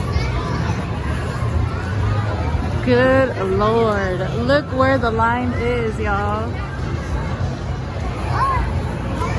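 A crowd of people murmur and chatter in a large echoing hall.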